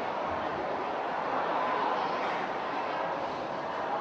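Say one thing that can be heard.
A young woman speaks into a microphone over loudspeakers.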